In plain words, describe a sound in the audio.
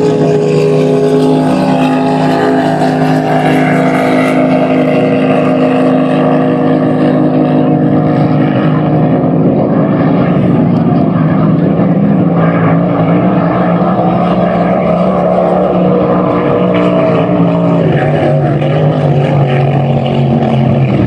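A racing boat's engine roars loudly at high speed across the water.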